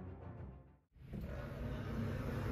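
A sliding glass door rolls open.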